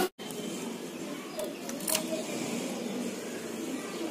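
A key clicks as it turns in a lock.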